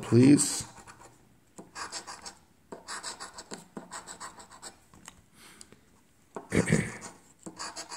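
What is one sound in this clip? A coin scratches across a scratch card.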